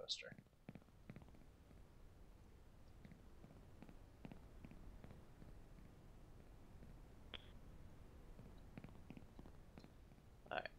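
Footsteps tread softly on hard ground.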